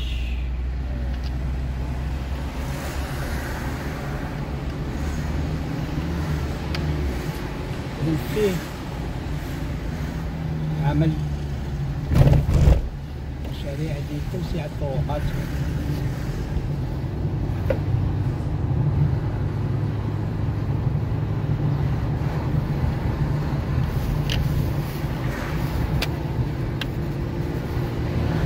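Tyres roll on smooth asphalt.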